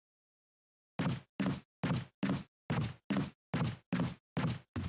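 Footsteps tread at a slow, steady pace on a wooden floor.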